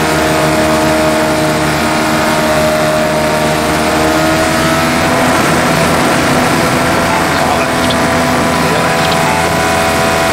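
A racing car engine whines loudly at high revs, its pitch shifting as gears change.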